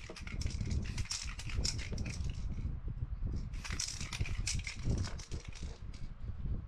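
A sheet of paper rustles and crinkles as hands handle it.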